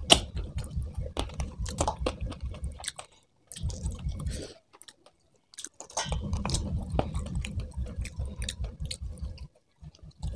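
Fingers squish and mix food against a metal plate, close up.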